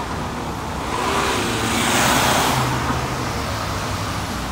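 A car swishes past on the wet road.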